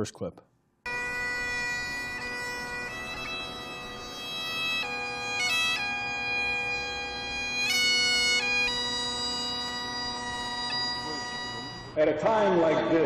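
A bagpipe plays a steady droning tune.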